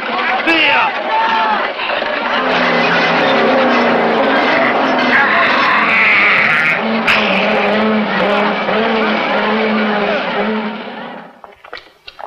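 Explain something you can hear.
A crowd of men and women shouts and clamours loudly.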